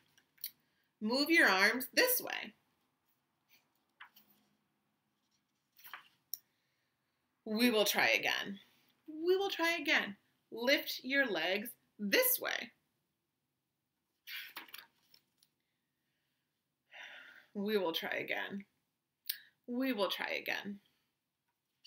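A woman reads aloud expressively, close by, with pauses.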